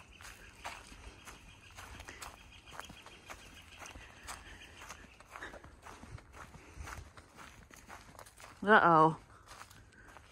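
Footsteps crunch through dry leaves on a trail.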